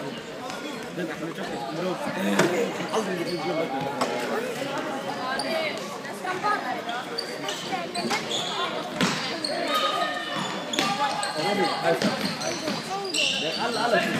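A futsal ball thuds off a player's foot.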